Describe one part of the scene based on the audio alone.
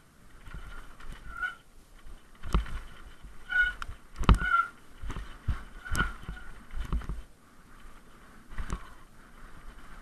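A bicycle bumps and rattles over a rough dirt trail.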